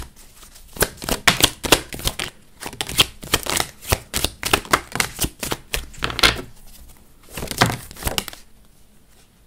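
Playing cards are shuffled, flicking and riffling quickly.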